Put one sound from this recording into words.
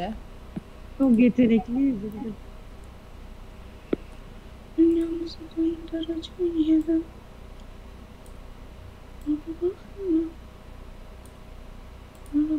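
A young woman talks casually close to a microphone.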